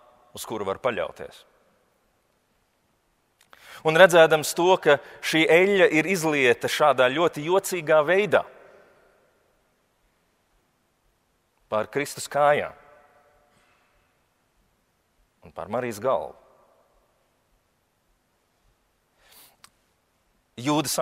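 A young man chants a prayer through a microphone in a large echoing hall, with long pauses.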